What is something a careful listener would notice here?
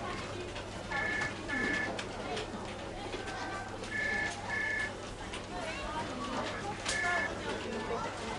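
A desk telephone rings in short double bursts.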